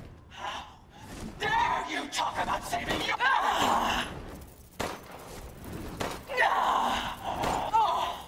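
A pistol fires several loud shots.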